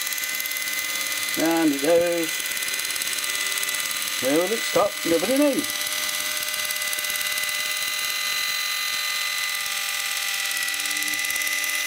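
An electric can opener whirs steadily as it cuts around a can.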